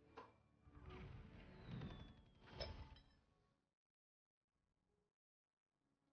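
A teacup clinks against its saucer.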